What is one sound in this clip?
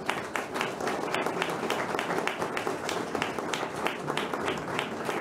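A harp plays a quick run of plucked notes.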